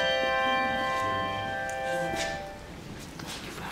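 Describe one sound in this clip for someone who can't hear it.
Handbells ring out together in a chord and fade away.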